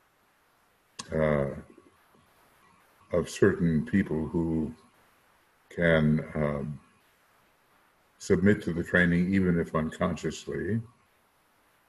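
An older man speaks calmly and deliberately into a close microphone, in short phrases with pauses.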